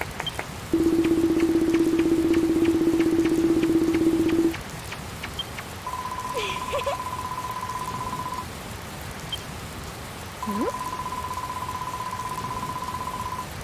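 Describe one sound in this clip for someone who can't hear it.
Rapid electronic blips chatter as text scrolls in a game.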